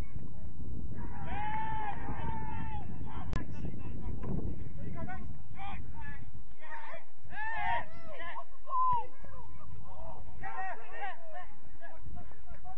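Men shout to each other from a distance across a playing field.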